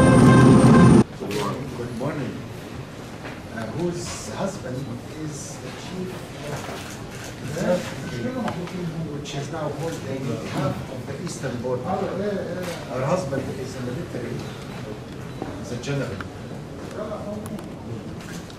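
Men talk calmly in a room.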